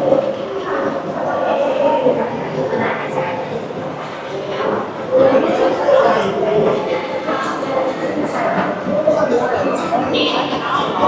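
Many voices murmur and echo in a large indoor hall.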